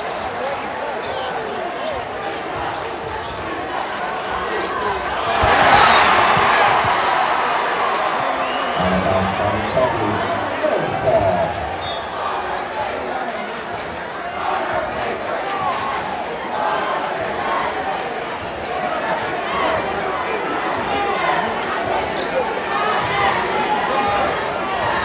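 A large crowd chatters and cheers, echoing in a big indoor hall.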